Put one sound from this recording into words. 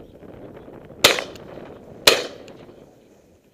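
A shotgun fires twice nearby, sharp and loud.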